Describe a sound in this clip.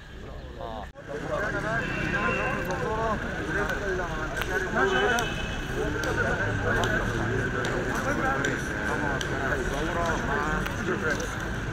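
Several men talk over one another in a noisy crowd outdoors.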